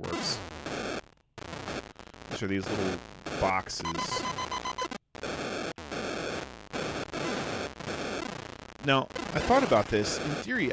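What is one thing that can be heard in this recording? Retro video game sounds beep, buzz and warble electronically.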